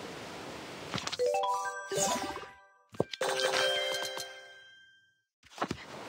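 A bright game chime jingles as a menu pops open.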